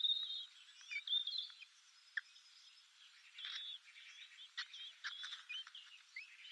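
Blackbird nestlings cheep in high, thin calls.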